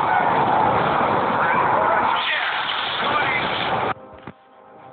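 Explosions boom and crackle in a battle.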